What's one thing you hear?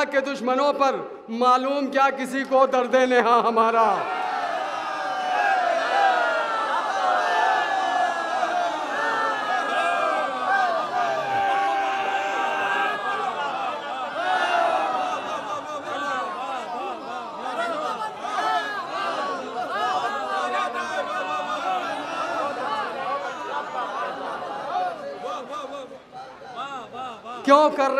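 A young man sings out over a microphone and loudspeakers, voice held and wavering.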